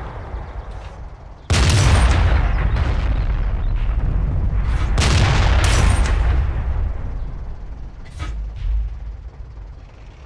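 Trees crack and crash as a tank pushes through them.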